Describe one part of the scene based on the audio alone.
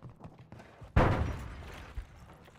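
A gun fires in a short, loud burst.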